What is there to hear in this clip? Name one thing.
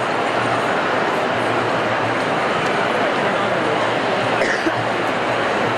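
A large crowd chatters and chants loudly in a big echoing hall.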